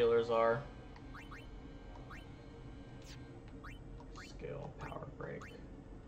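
Short electronic menu blips sound.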